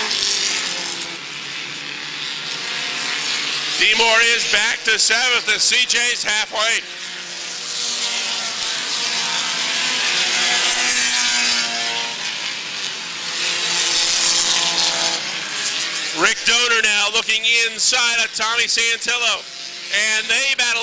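Race car engines roar and whine as the cars speed past.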